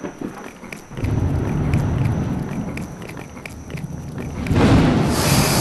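A creature crunches and chews noisily.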